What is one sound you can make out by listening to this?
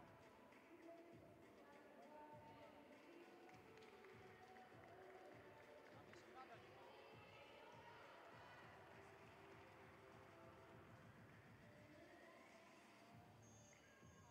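Young women chatter and cheer together in a large echoing hall.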